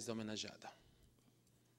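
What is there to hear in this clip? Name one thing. A man speaks through a microphone in a large room.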